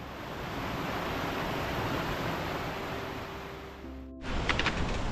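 Water rushes over rocks in a stream.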